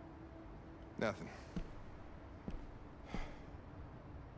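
An older man speaks quietly and gravely.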